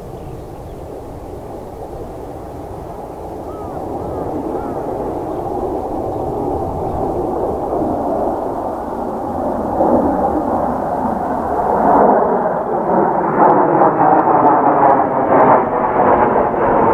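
Jet engines roar overhead, growing steadily louder as the planes approach.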